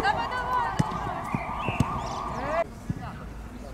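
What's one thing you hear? A ball is kicked on artificial turf.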